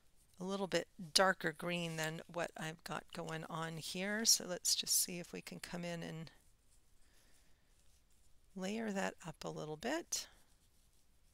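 A woman talks calmly into a headset microphone, close up.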